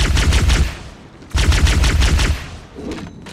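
A rapid-fire gun shoots in loud bursts.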